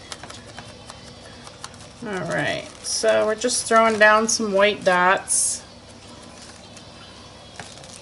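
A plastic stencil rustles and taps against paper.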